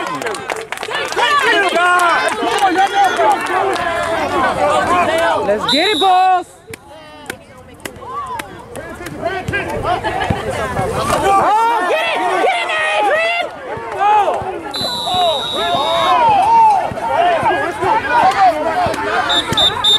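Spectators cheer and shout outdoors.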